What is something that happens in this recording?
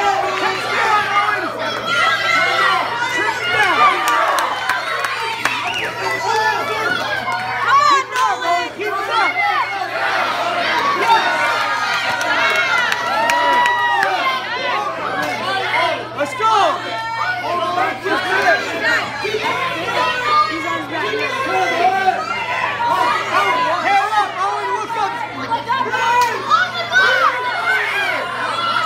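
A crowd of adults and children shouts and cheers loudly in an echoing hall.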